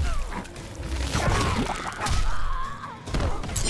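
A splattering burst of impact crunches loudly.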